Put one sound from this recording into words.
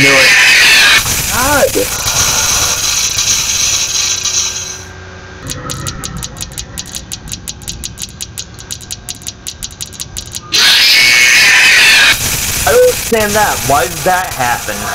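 Static hisses steadily.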